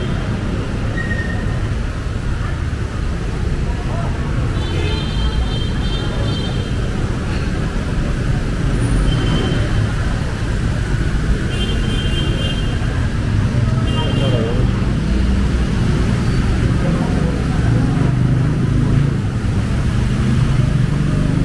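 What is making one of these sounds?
Motorbike engines hum as they pass through water.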